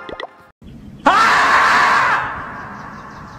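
A marmot lets out a loud, long, shrill scream.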